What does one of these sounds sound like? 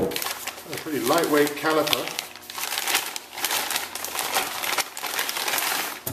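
A plastic bag crinkles as it is opened.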